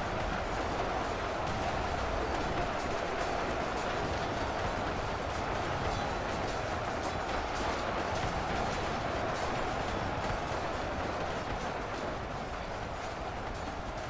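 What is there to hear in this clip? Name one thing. Dense gunfire rattles continuously from many weapons at once.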